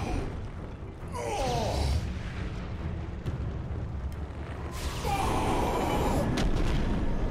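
A giant creature roars with a deep, rough growl.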